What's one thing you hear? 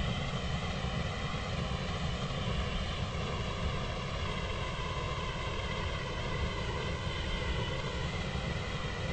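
A train's electric motor hums steadily as it runs along the track.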